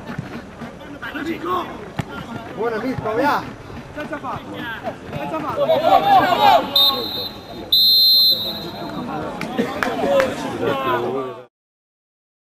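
Men shout to each other outdoors across a football pitch.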